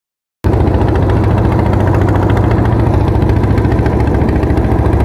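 A boat engine chugs steadily at close range.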